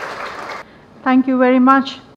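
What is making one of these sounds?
A woman speaks or sings into a microphone.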